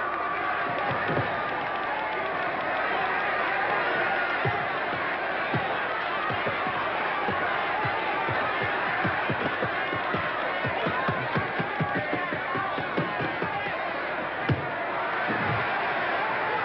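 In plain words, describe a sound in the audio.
Boxing gloves thud against a body in quick blows.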